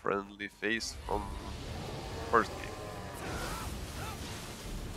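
A large beast roars and snarls.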